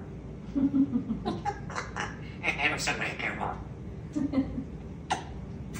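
A parrot chatters and mimics sounds close by.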